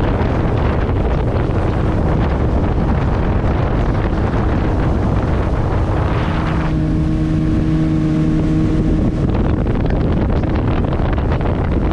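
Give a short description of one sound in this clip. A boat's motor drones steadily.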